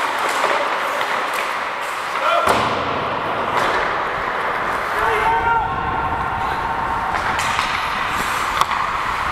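Skate blades scrape and hiss across the ice in a large echoing hall.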